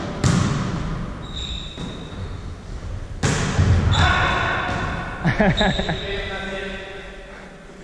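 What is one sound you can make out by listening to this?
Sneakers squeak on the floor.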